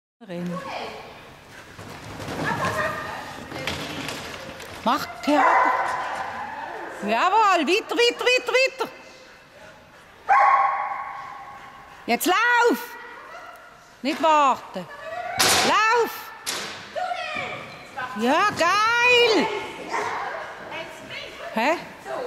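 A woman calls out loudly in short bursts, echoing in a large hall.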